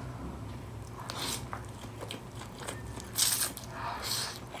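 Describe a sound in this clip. A woman slurps noodles close to a microphone.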